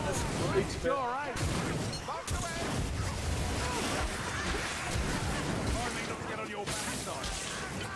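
Flames roar and crackle.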